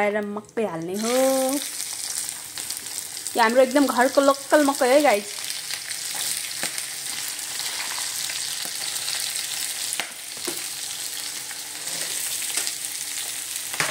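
Lentils sizzle and crackle in hot oil.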